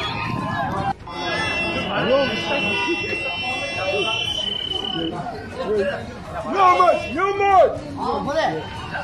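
Many men's voices clamour from a distant crowd.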